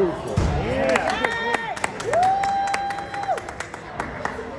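A small band plays held notes in a large echoing hall.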